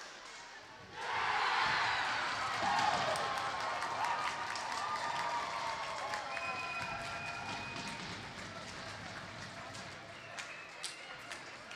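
A crowd in an arena erupts in loud cheering and applause.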